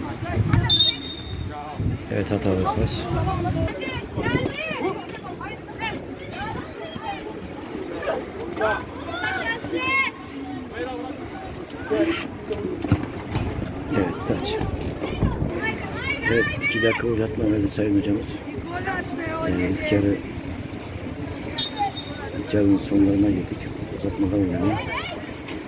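Young women shout and call out to each other on an outdoor pitch.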